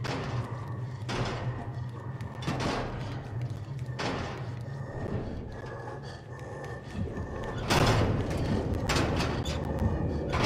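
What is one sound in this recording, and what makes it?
Small quick footsteps patter across a hard floor.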